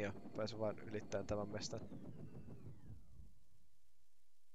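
A hovering vehicle's engine hums.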